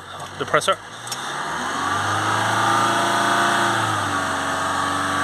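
A car engine starts up and revs briefly.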